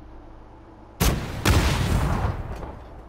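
Loud gunshots crack nearby.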